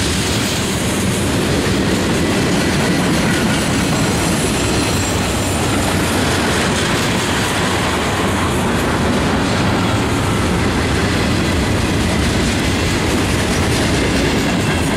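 A freight train rumbles past close by with a steady roar.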